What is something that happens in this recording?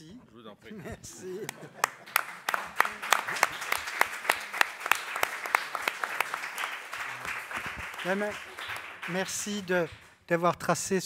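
A crowd applauds steadily.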